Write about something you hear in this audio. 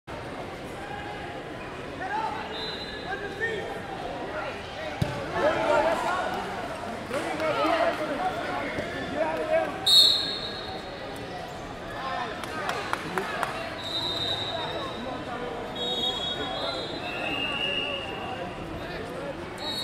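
A crowd of spectators murmurs and chatters in a large echoing hall.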